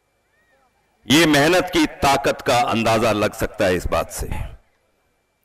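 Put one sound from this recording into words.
A middle-aged man speaks forcefully into a microphone over a loudspeaker.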